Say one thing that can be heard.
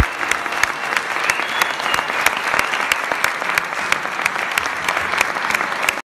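A frame drum beats a steady, quick rhythm.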